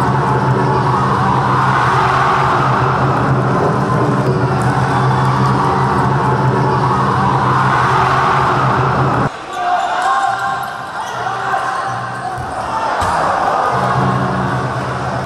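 A large crowd cheers and chants in an echoing indoor hall.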